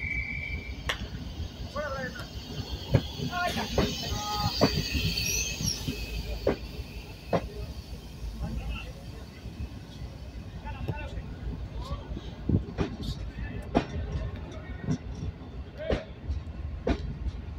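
A passenger train rumbles slowly past close by.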